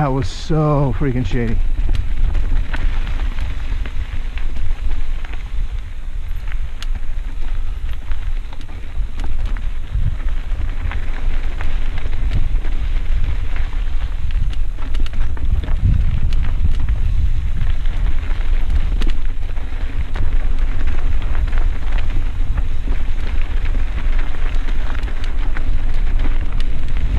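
Wind rushes past a moving rider.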